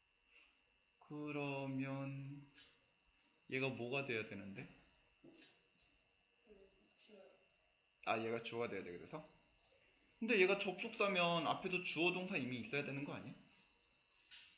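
A young man speaks calmly into a close microphone, explaining in bursts with pauses.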